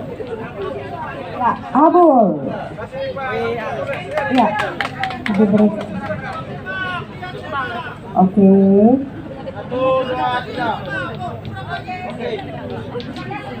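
A crowd cheers and shouts nearby.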